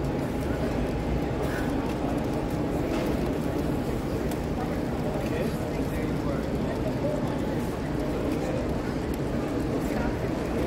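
A model train rumbles and clatters steadily along the track.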